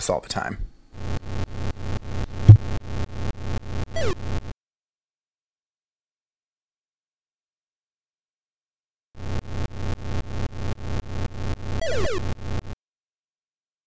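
An electronic bowling ball rolls with a rapid, rattling buzz.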